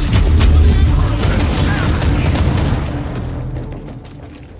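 Gunfire and heavy blasts roar in a close fight.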